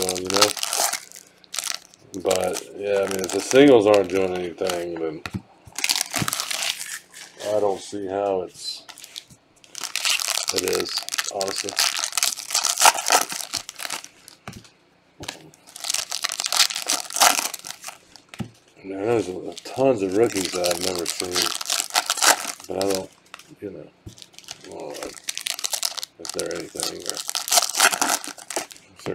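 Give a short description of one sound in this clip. Foil wrappers crinkle and tear in rustling bursts.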